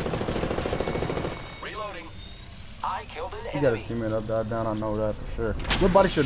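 A healing device in a video game charges with a rising electronic whine.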